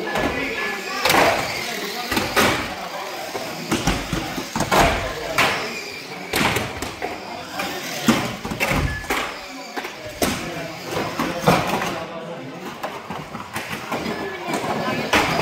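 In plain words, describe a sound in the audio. Toy cars knock against a track's barriers.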